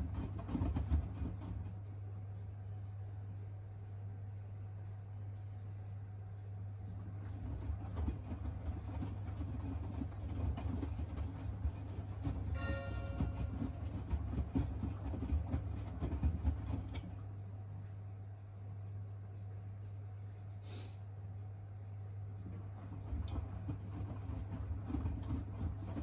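Wet laundry sloshes and thumps inside a turning drum.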